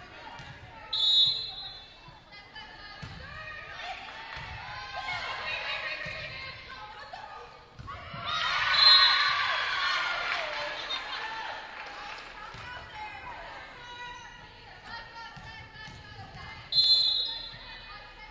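A referee's whistle blows short and sharp in a large echoing gym.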